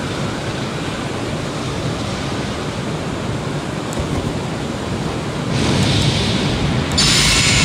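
Flames roar and rumble steadily all around, growing louder near the end.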